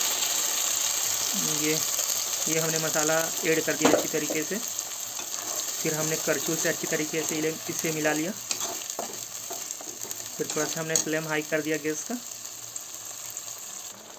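A metal spatula scrapes against a wok.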